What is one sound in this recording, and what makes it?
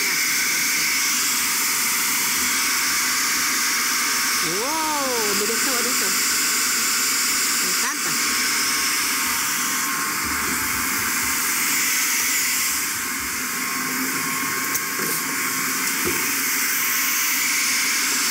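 A food processor whirs as it chops food.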